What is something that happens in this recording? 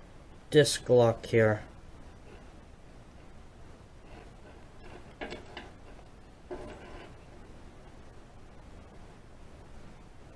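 A metal pick scrapes and clicks inside a padlock.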